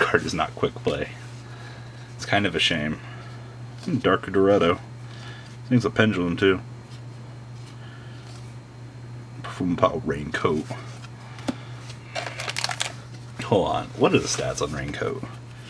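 Trading cards slide and flick against each other in someone's hands.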